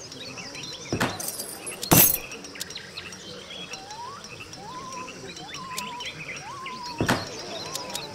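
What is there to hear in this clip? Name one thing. Sharp interface clicks sound now and then.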